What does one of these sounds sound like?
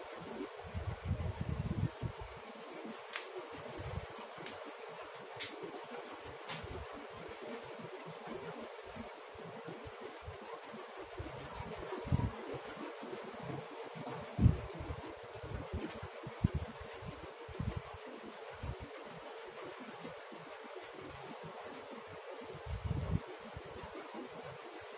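Cloth rustles and brushes close to the microphone.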